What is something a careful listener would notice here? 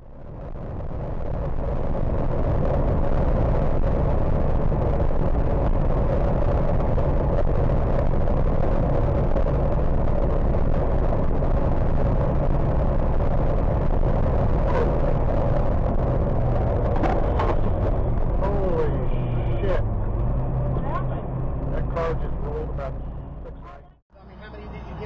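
A truck engine drones steadily as tyres roar on a highway.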